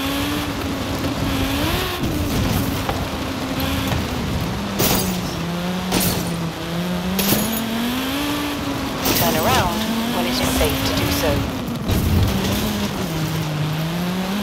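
A rally car engine roars and revs steadily.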